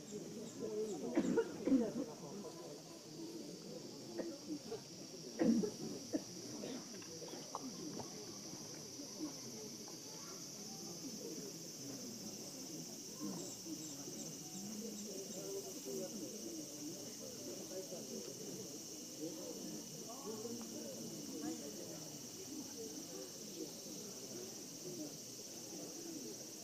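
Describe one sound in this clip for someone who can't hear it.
A crowd of onlookers murmurs and chatters quietly outdoors.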